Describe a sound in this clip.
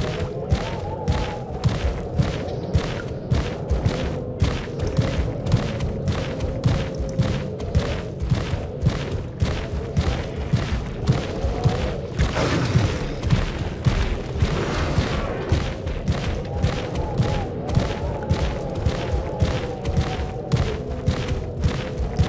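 A large creature's clawed feet thud rhythmically on the ground as it runs.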